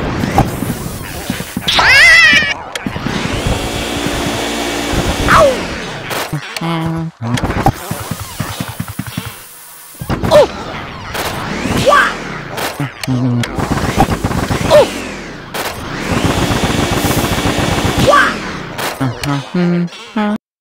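A vacuum whooshes steadily, rising and falling as it sucks up air.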